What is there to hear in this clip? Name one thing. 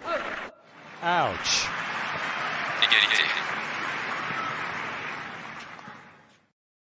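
A stadium crowd applauds.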